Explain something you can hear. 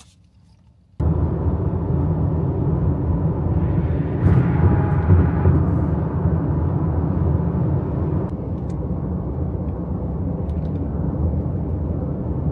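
A car's engine and tyres rumble steadily on a highway at speed.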